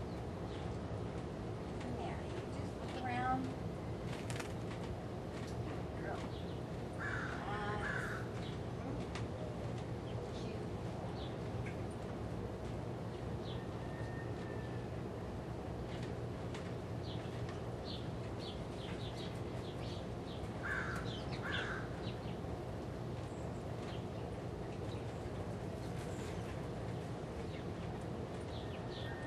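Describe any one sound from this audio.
A horse shifts its hooves with dull knocks on a trailer's floor.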